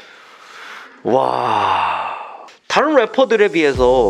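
A man speaks close by into a microphone.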